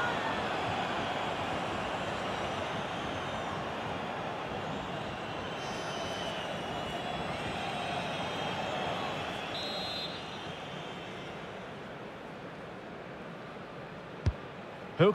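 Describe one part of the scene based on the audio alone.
A large stadium crowd roars and chants steadily, then quietens.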